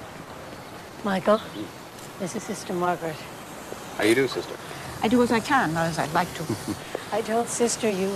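A woman talks outdoors.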